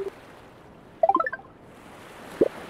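A short rising chime plays as a menu opens.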